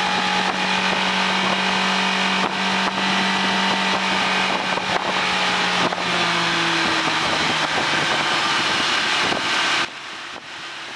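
An outboard motor roars steadily at high speed.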